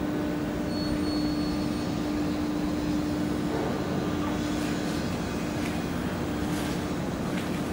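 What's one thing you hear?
Water splashes against a moving ship's hull.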